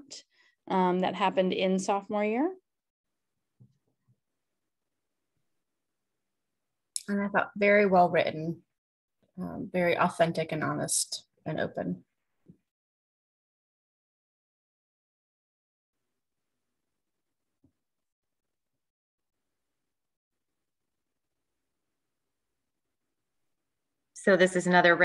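A woman speaks calmly through a computer microphone in short phrases with long pauses.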